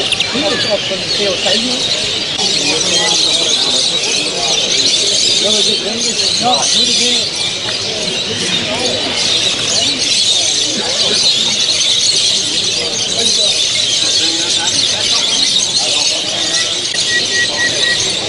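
Many small birds chirp and twitter all around.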